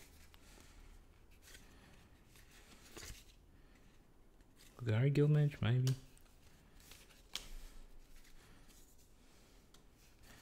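Playing cards slide and flick against each other as they are shuffled through.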